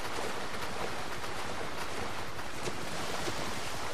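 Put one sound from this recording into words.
Water splashes as a man wades through the shallows.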